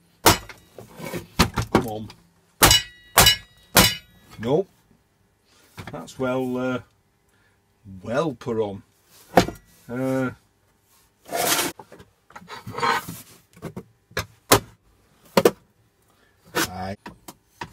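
A hammer strikes a thin metal box with sharp clangs.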